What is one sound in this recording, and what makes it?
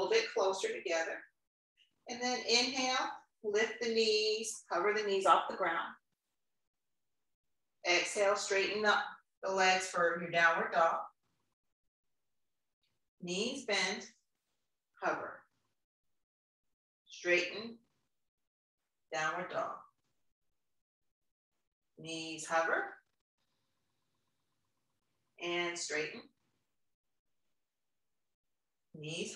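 A young woman speaks calmly, giving instructions in short phrases with pauses.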